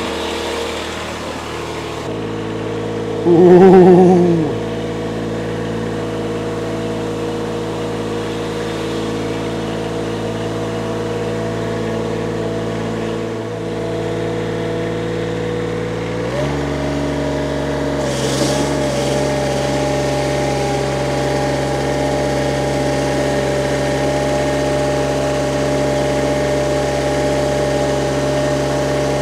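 A ride-on mower engine runs with a steady hum.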